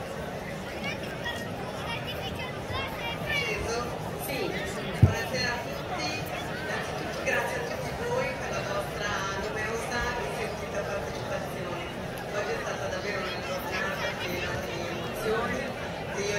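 A crowd murmurs softly in the background.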